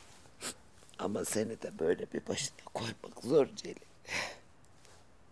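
A woman speaks tearfully up close.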